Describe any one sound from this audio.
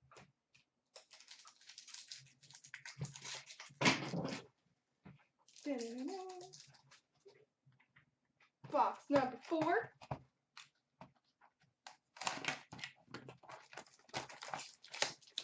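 Cardboard and plastic wrappers rustle as hands handle them.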